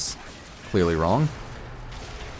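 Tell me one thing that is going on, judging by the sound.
A laser weapon fires with a loud, falling zap.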